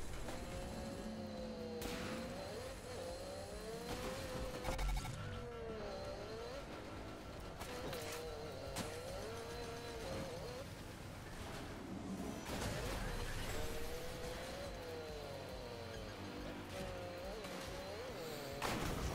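Tyres skid and roar over rough ground.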